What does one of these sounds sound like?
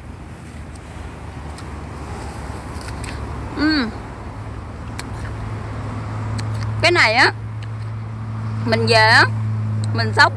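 A young woman chews noisily.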